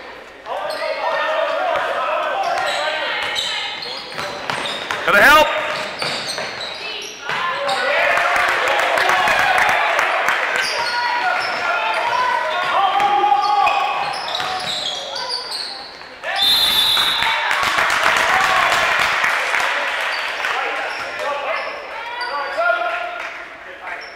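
A crowd of spectators cheers and shouts loudly in an echoing gym.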